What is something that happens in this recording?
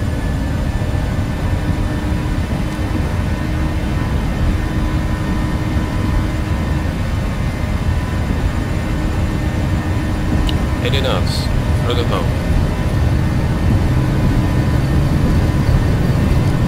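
Wheels rumble over a runway.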